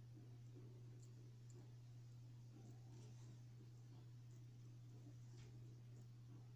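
Metal parts of a single-action revolver click faintly as it is handled.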